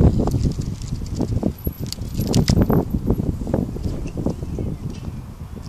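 A bicycle rolls past close by, its frame rattling over bumpy ground.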